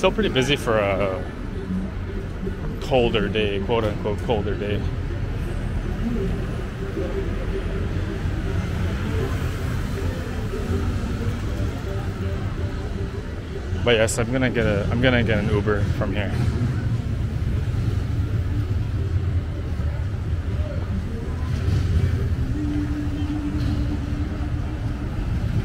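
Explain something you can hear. Traffic rumbles steadily along a city street.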